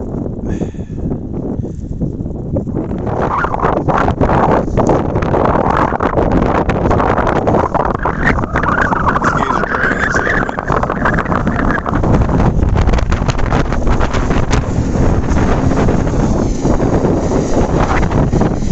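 Strong wind gusts across the microphone outdoors.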